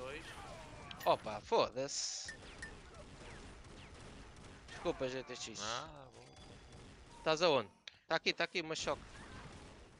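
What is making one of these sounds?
Gunfire and energy blasts crack and whoosh in short bursts.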